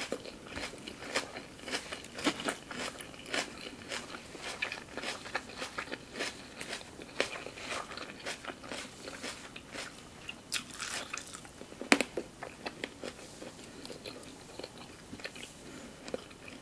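A woman chews juicy food noisily, close to a microphone.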